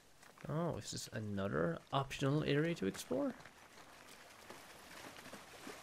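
Water pours from a pipe and splashes onto the ground.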